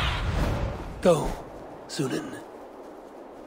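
A raven caws twice.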